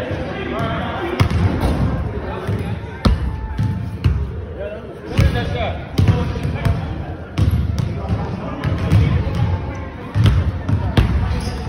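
Young people talk and call out in a large echoing gym.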